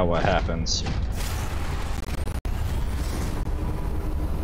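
An electronic whoosh surges up.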